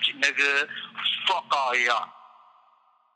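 A young man's voice sings out briefly with a trailing echo.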